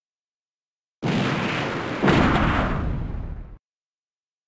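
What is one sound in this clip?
A heavy gun fires with a loud, roaring blast that slowly dies away.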